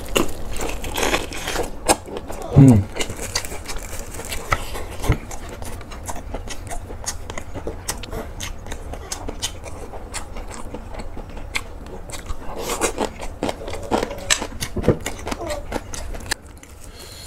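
A young man chews food noisily and smacks his lips close to a microphone.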